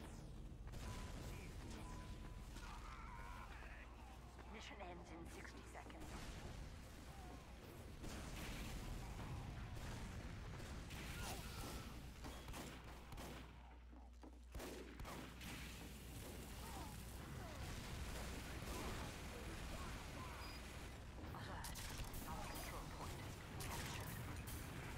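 Gunfire and explosions crack and boom.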